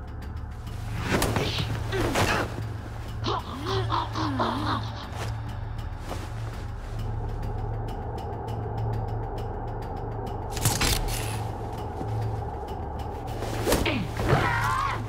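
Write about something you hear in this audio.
Heavy blows land with sharp thuds during a struggle.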